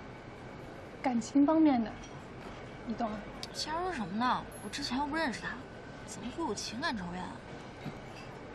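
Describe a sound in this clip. A second young woman answers softly, close by.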